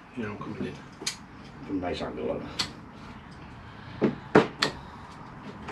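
A metal tool knocks and clicks against soil and a pot.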